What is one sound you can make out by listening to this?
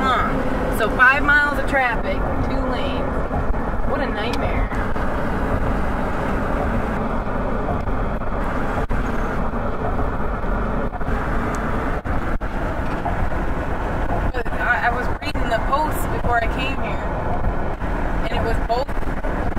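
Car tyres hum steadily on a bridge deck.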